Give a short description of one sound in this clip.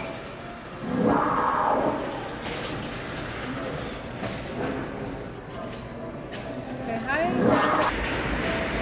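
A dinosaur model roars loudly now and then.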